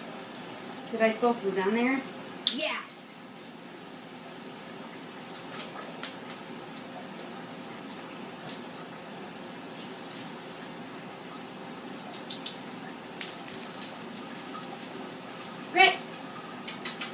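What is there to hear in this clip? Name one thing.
A woman speaks to a dog in a bright, high voice.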